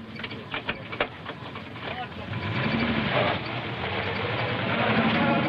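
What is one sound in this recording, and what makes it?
A car engine hums and grows louder as the car rolls forward.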